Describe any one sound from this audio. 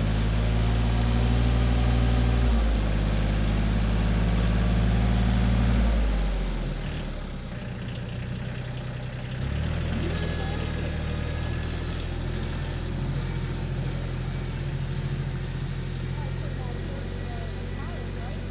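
A tractor engine rumbles nearby, its pitch shifting as it works.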